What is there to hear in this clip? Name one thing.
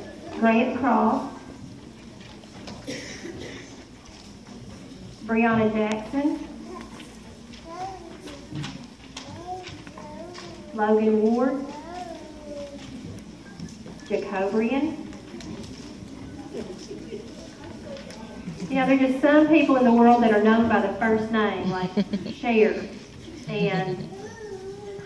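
Children take turns reading aloud into a microphone in a large room.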